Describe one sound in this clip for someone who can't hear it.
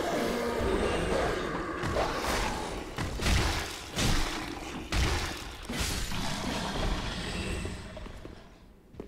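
Metal weapons clash and strike hard in a fight.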